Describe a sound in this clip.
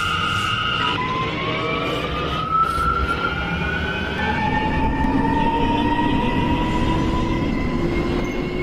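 An electric train motor whines, rising in pitch as the train speeds up.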